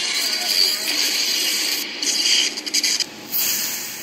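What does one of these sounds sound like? A fire flares up and crackles.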